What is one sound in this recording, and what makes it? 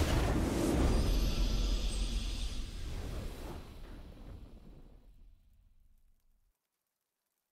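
A triumphant fanfare swells and then fades away.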